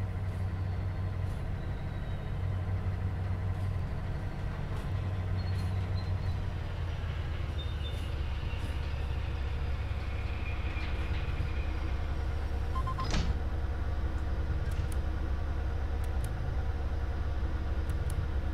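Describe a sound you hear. A diesel locomotive engine rumbles steadily nearby.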